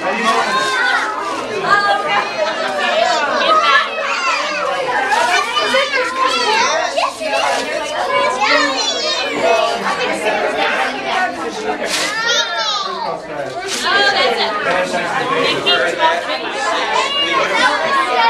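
Young children chatter and shout excitedly close by.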